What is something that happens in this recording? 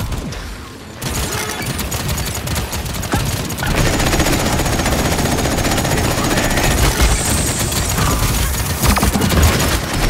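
Guns fire in rapid bursts with loud impacts and explosions.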